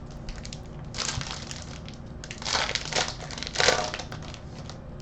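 A foil wrapper crinkles and tears as it is opened by hand.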